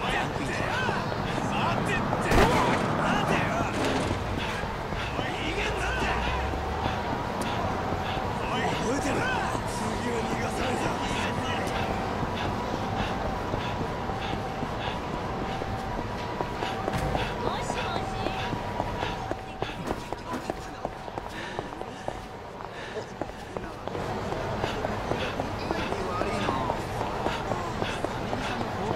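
Quick footsteps run on hard pavement.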